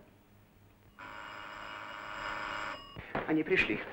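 A doorbell rings with a steady buzzing tone.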